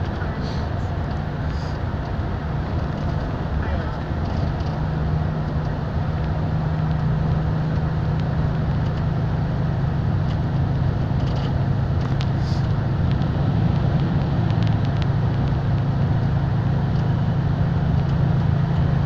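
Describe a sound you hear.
Fingers tap on a touchscreen.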